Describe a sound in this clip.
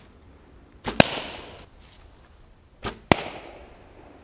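A whip cracks sharply, echoing through woods.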